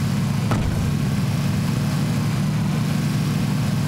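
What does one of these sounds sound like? An engine rumbles steadily as a vehicle drives along a gravel road.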